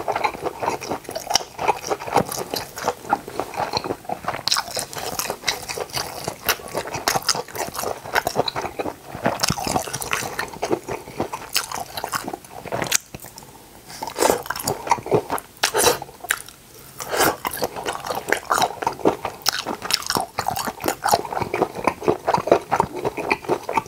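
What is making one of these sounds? A man chews food wetly and noisily, close to a microphone.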